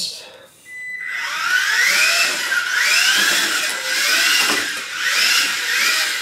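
A small electric toy car motor whines, rising and falling in pitch as it speeds up and slows down.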